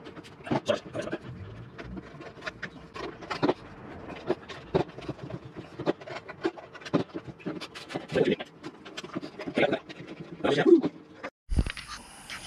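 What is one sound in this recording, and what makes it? Rubber rustles and squeaks as hands work it.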